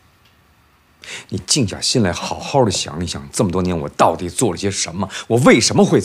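A man speaks with rising emotion nearby.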